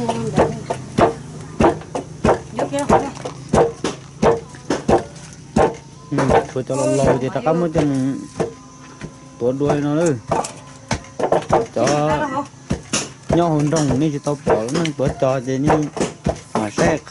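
A wooden pestle thumps steadily into a stone mortar.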